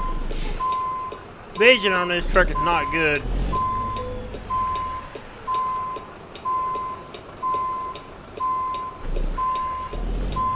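A truck engine idles with a low rumble.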